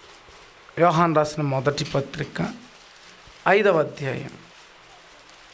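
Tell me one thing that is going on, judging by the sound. A young man speaks into a microphone over a loudspeaker in short bursts.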